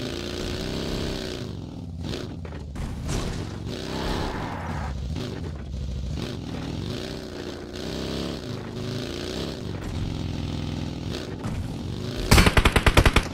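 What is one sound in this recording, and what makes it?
A buggy engine revs and roars, rising and falling in pitch.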